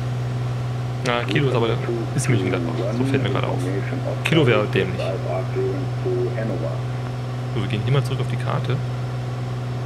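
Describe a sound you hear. A man talks calmly through a microphone.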